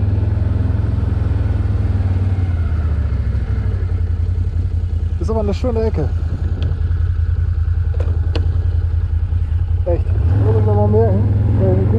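A quad bike engine rumbles steadily close by and revs up near the end.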